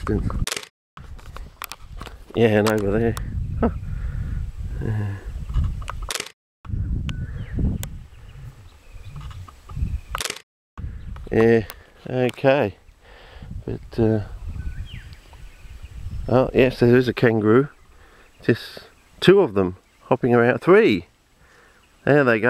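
A man speaks calmly close by, pausing between phrases.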